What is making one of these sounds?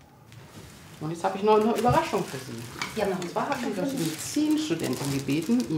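A middle-aged woman speaks calmly and clearly.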